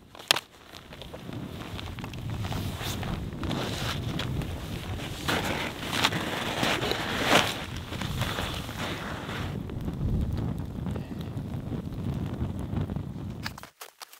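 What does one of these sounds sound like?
A campfire crackles and roars outdoors.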